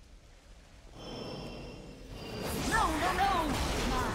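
Magic spell effects whoosh and shimmer, growing louder.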